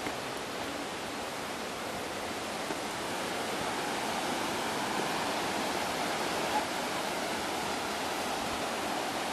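A river rushes steadily over rocks outdoors, growing louder.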